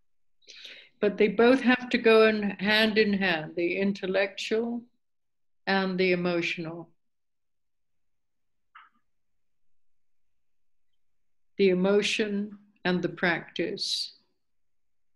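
An elderly woman speaks calmly and close by, in short bursts with pauses.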